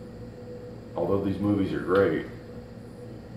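A man speaks calmly and briefly close by.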